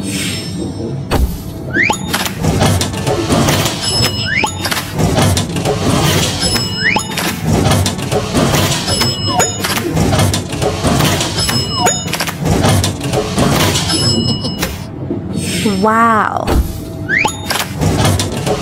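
Cartoon elevator doors slide open and shut with a whoosh.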